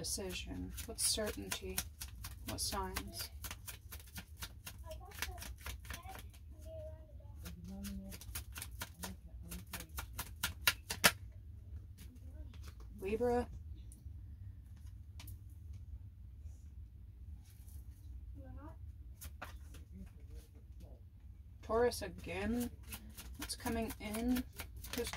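Playing cards are shuffled with quick, soft flicking.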